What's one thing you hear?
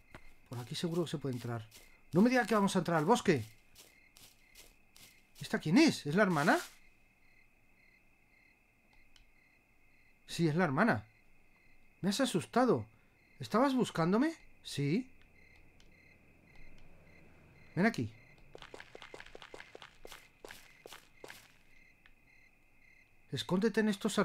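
A middle-aged man talks calmly and close into a microphone, in short bursts.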